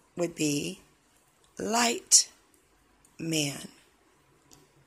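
A woman speaks calmly in short phrases close to a microphone.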